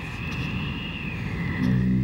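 A man cries out in anguish.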